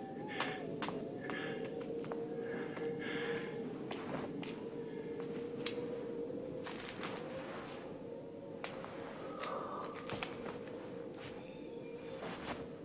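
Footsteps scuff slowly on a stone floor.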